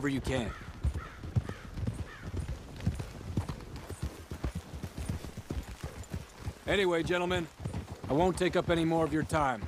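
Horse hooves clop steadily on a dirt path.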